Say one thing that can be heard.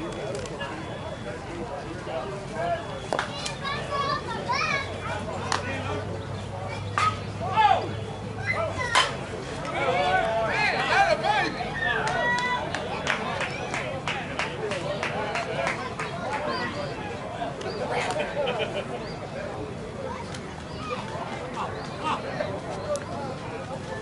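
Men shout and cheer outdoors at a distance.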